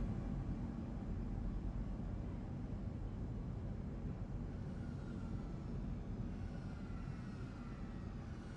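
A small flying drone whirs as it passes overhead.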